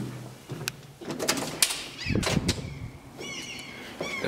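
A door swings open and shuts.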